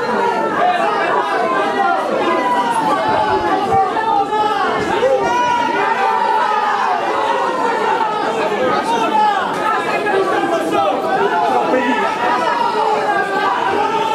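A large crowd of women and men sings together close by, outdoors.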